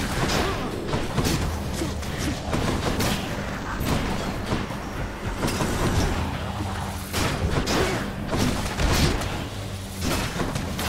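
Magic attacks whoosh and crackle in quick bursts.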